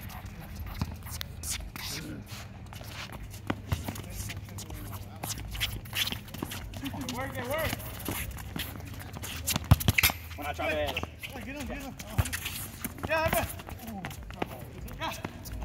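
Sneakers scuff and squeak on a hard court.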